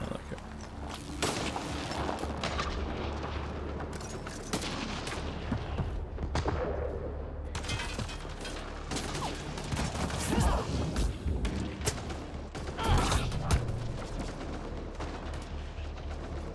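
Guns fire in bursts of sharp shots.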